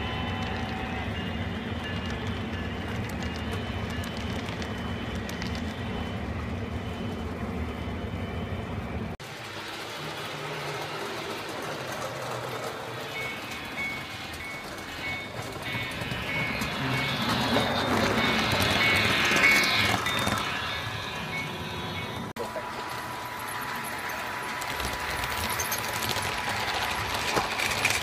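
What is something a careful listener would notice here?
A model train rumbles and clatters past on its tracks.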